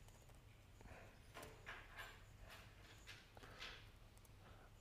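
A laptop keyboard clicks softly as a man types.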